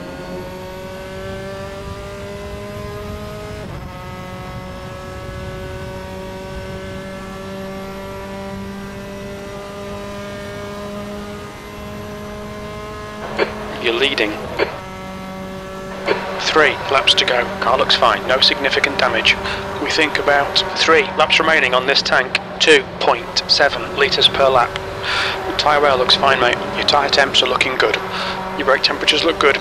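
A racing car engine whines steadily at high revs, dropping briefly in pitch as it shifts gear.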